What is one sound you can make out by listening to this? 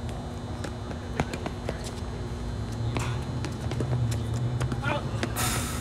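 Tennis shoes squeak on a hard court.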